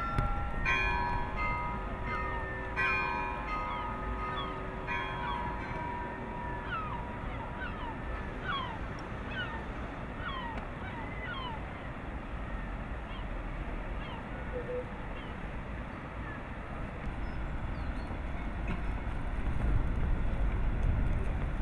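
A fishing net rustles as it is handled in a boat.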